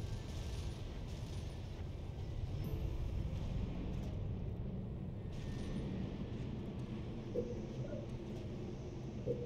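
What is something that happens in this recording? A low, steady rumble of engines drones throughout.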